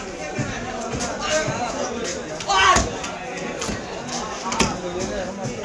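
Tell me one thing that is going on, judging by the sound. A cleaver chops into a fish on a wooden block with dull thuds.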